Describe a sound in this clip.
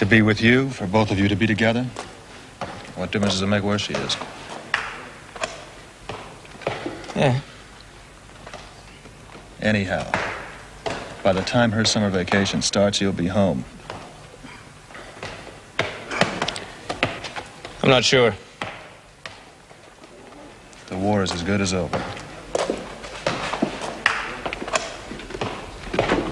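A man talks in a deep, low voice close by.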